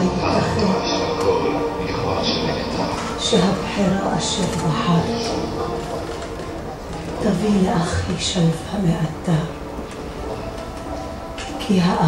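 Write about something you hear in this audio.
Electronic music plays loudly through loudspeakers in a large echoing hall.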